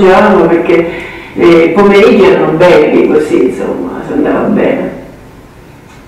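An elderly woman talks warmly through loudspeakers in a room.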